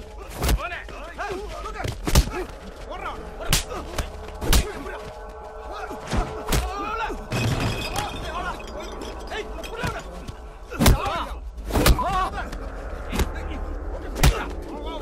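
Men shout and grunt.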